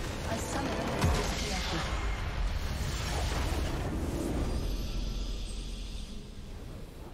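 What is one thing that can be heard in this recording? A large explosion booms in a video game.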